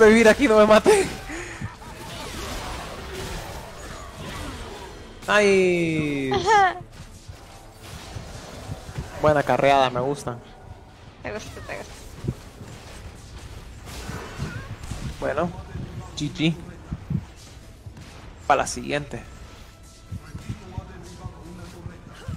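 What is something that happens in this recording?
Game sound effects zap and clash.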